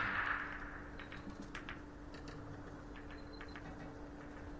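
Billiard balls click against each other and the cushions as they roll and scatter.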